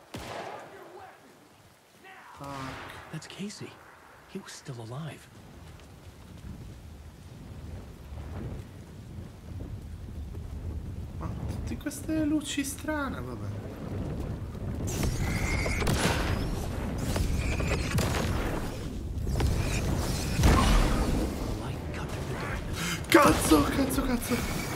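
A young man talks with animation into a microphone close by.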